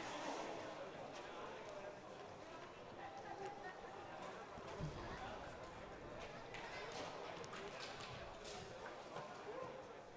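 Young men talk quietly together in a huddle.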